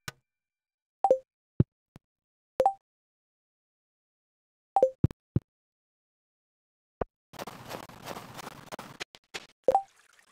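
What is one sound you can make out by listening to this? Short, bright game menu blips sound now and then.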